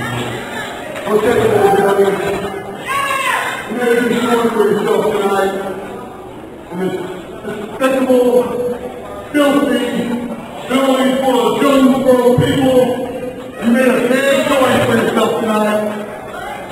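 A man shouts loudly into a microphone through loudspeakers in a large echoing hall.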